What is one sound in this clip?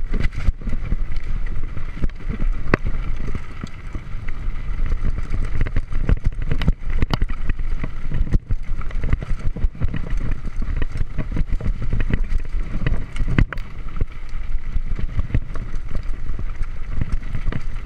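Wind rumbles loudly against a helmet microphone.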